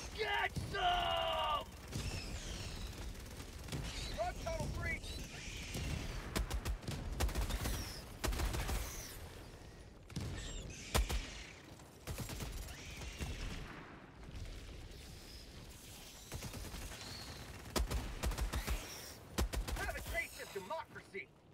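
Explosions rumble deep and heavy.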